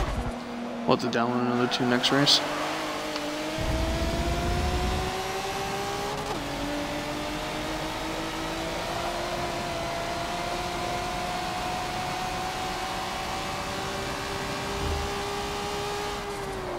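A race car engine revs high and climbs steadily in pitch as the car accelerates.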